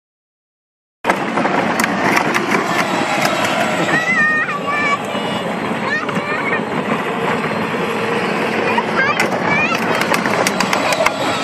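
A toy car's electric motor whirs.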